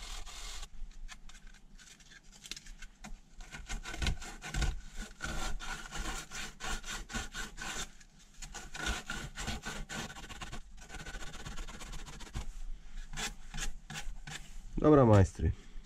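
Sandpaper scrubs against a metal bicycle axle in quick strokes.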